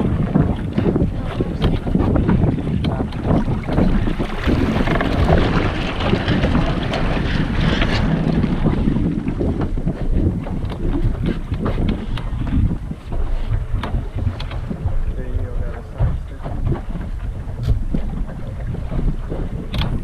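Water splashes against a sailboat's hull.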